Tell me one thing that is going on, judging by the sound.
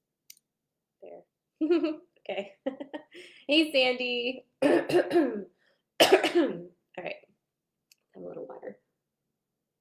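A young woman speaks casually and laughs, close to a microphone.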